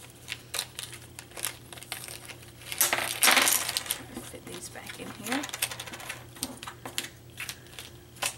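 Small wooden discs click and tap against each other.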